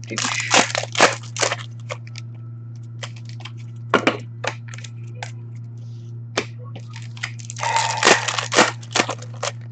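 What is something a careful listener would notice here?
Plastic card packs rustle and crinkle as hands handle them.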